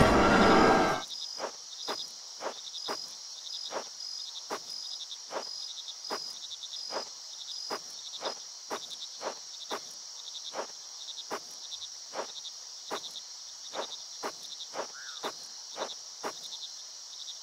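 Footsteps crunch steadily on soft ground.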